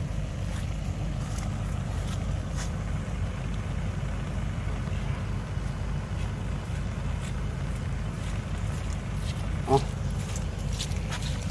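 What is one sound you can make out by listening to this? Footsteps squelch and crunch on wet grass and mud.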